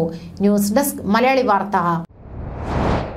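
A young woman speaks calmly and clearly into a microphone.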